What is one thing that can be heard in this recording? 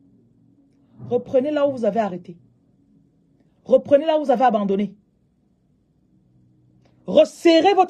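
A woman speaks calmly and closely into a microphone, in short bursts with pauses.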